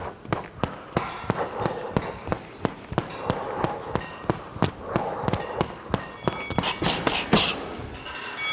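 Gloved punches thud rapidly against a heavy bag.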